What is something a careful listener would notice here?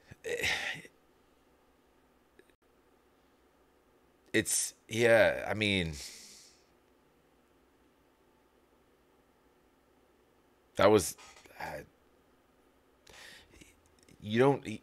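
A man speaks close to a microphone in short, animated bursts with pauses between.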